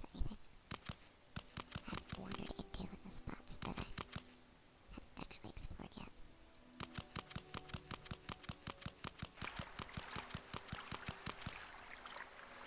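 Footsteps thud quickly and steadily on soft ground.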